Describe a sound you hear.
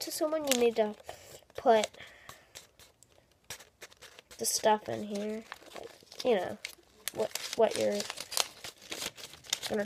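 Paper rustles and crinkles in a boy's hands.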